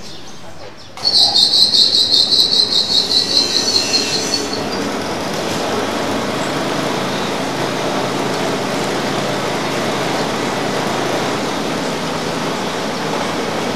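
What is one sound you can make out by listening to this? A machine starts up and runs with a loud, steady whirring roar.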